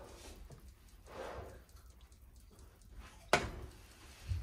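A metal spatula scrapes and taps against a frying pan.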